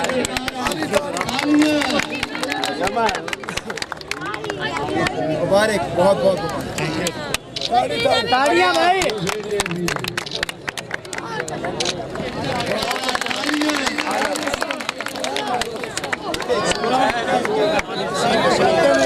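A crowd of men talks and cheers loudly outdoors.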